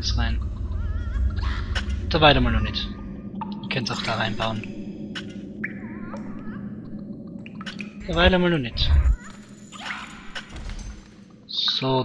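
A small creature squeaks and chatters in high, bending cries.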